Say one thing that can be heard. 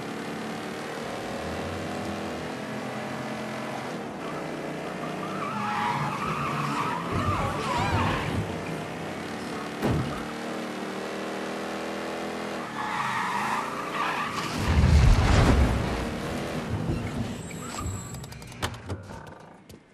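A car engine hums steadily and revs as the car drives.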